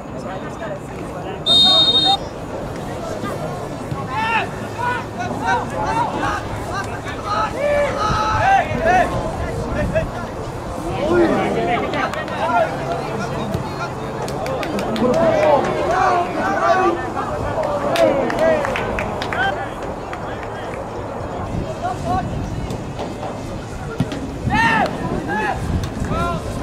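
Young men shout and call to each other across an open outdoor field.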